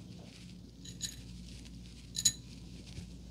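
A plastic hair clip clicks.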